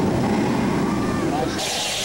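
Flames burst with a loud roaring hiss.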